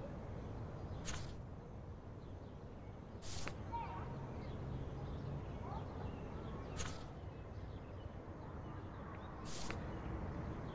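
A sheet of paper rustles as a note is picked up and put back.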